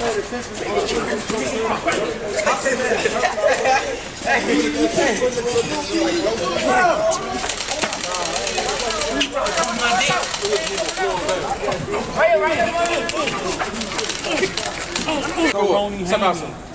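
A crowd of young men and women shout and yell excitedly close by.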